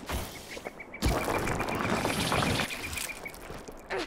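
Earth and rock rumble and crumble as a drill bursts up out of the ground.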